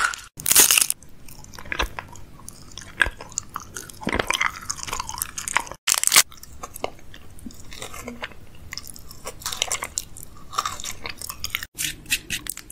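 A man chews candy with crunchy, sticky mouth sounds close to a microphone.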